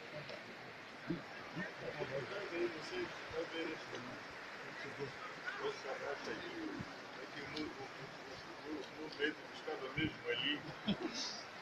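Several men talk among themselves nearby, outdoors.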